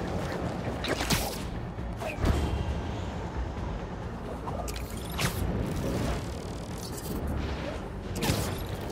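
Web lines shoot out with sharp snapping whooshes.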